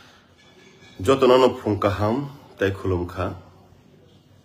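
A man speaks calmly and close to a microphone.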